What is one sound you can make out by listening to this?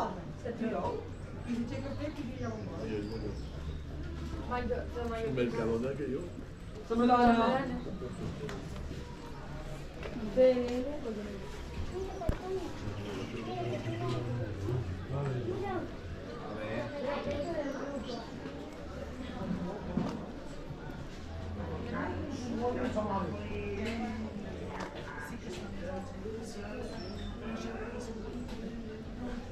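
Men and women chat nearby.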